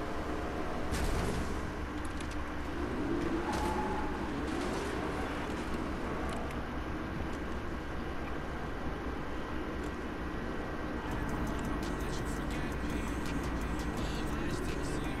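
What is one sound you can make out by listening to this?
A car engine revs as the car drives along a road.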